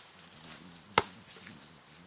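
A ball thuds on the ground.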